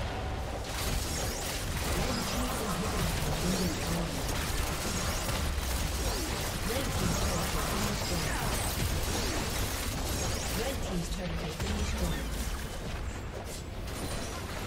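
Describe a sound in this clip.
Game spells and attacks crackle and blast in a dense, busy clash.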